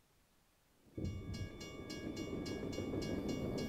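A diesel locomotive rumbles past close by.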